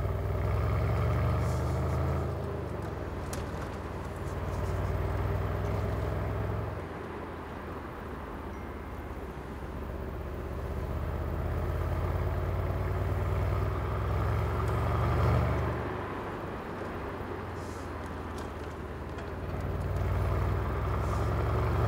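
A V8 sports car engine rumbles from inside the car, rising and falling as it accelerates and eases off.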